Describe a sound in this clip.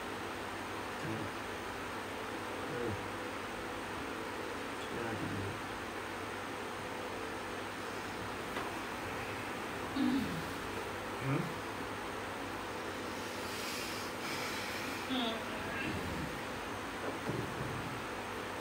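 A young woman makes short vocal sounds now and then.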